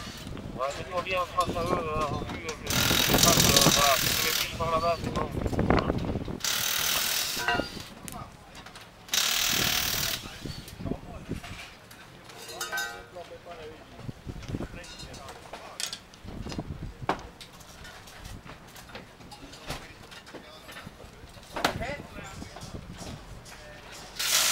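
Tools clank and knock against metal.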